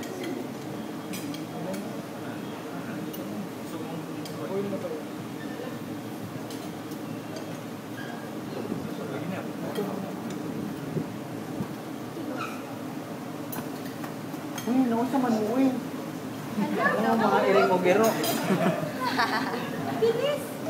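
Eggs sizzle softly in a hot frying pan.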